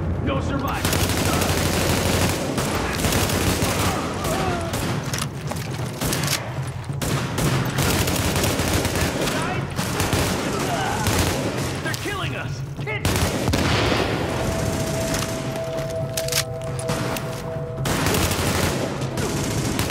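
Rifle shots fire in rapid bursts, echoing indoors.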